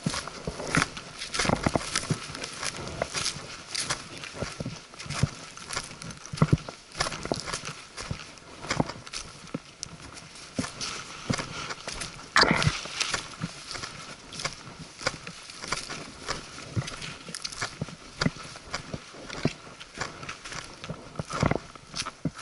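Footsteps crunch over dry leaves and twigs on a path.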